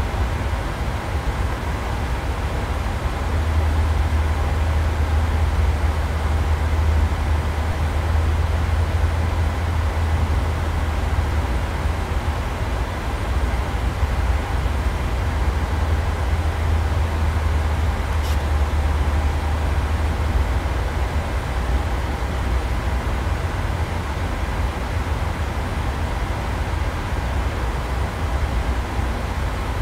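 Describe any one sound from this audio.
Jet engines drone steadily with a low rumble.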